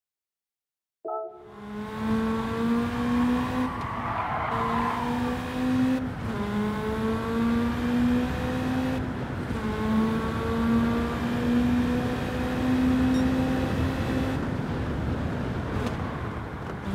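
A rally car engine roars and revs up through the gears.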